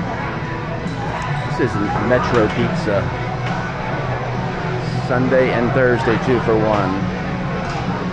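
Slot machines chime and jingle nearby.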